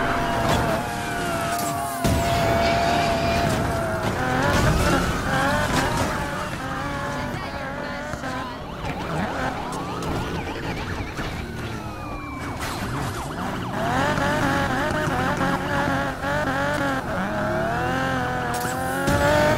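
A car engine revs hard and whines.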